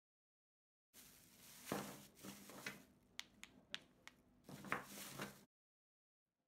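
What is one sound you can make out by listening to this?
Plastic wrap rustles and crinkles.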